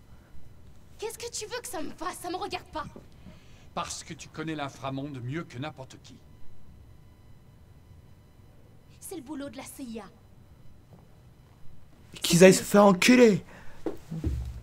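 A young woman speaks with irritation.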